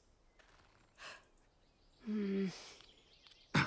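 A young male voice speaks with animation, close by.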